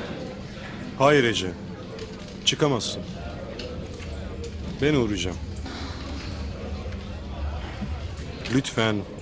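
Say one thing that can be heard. A man speaks calmly on a phone nearby.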